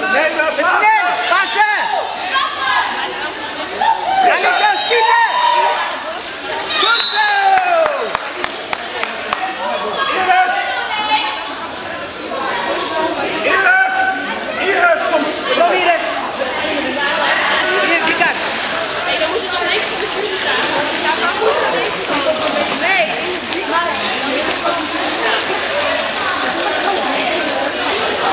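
Water splashes as water polo players swim and tread water.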